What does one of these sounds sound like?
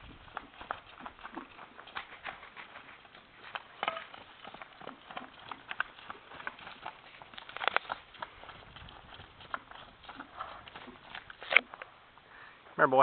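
Horse hooves thud and patter on dry dirt as a horse trots and canters.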